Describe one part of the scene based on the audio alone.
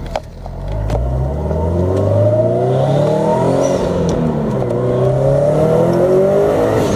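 A car engine revs up and climbs in pitch as the car accelerates.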